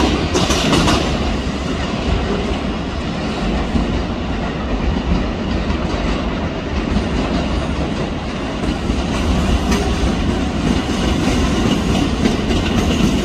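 A train approaches slowly with a low, steady rumble.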